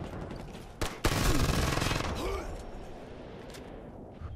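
Gunshots crack in loud bursts.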